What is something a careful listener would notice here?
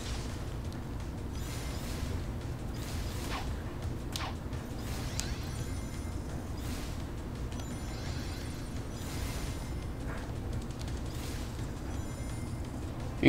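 Whooshing rushes of speed sweep past again and again.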